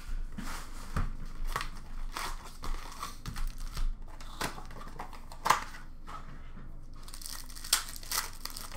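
Packs tap and clack against a plastic bin.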